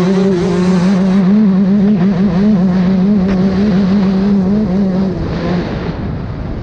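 A dirt bike engine revs loudly close by, rising and falling.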